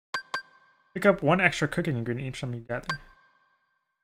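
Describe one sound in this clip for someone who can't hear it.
Menu selection blips chime.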